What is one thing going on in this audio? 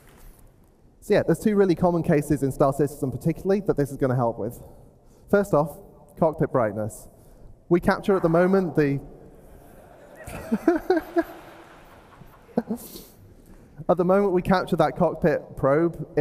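A man speaks calmly into a microphone through loudspeakers in a large hall.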